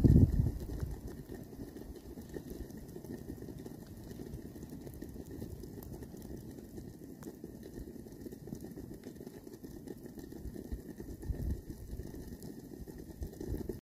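Glowing embers crackle and pop softly in a fire.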